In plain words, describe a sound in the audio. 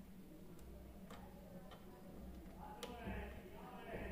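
A cable connector clicks as it is pushed into place.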